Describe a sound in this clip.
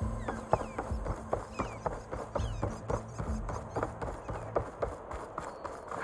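Footsteps thud quickly on wooden planks.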